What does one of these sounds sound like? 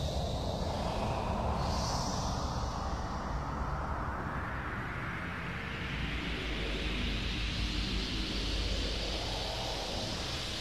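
Electronic keyboard music plays with a slowly rising, swelling hiss over a deep droning bass.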